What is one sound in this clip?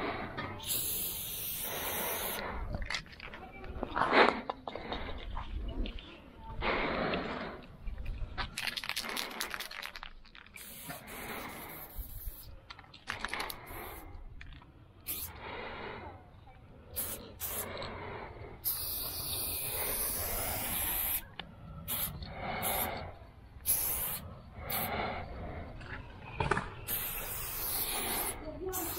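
A spray can hisses in short and long bursts close by.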